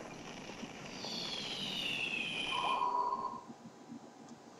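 A magical shimmering chime rings as a glowing crystal forms.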